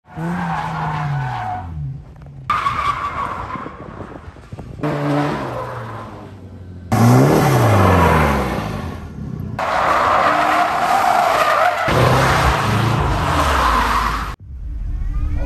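A car engine revs hard and roars, rising and falling.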